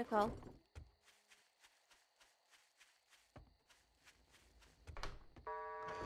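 Footsteps tread softly and evenly over grass.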